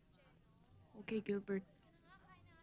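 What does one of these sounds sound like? A young woman answers briefly, close by.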